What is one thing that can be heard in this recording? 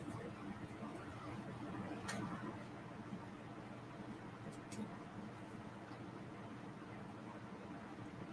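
Paper rustles softly.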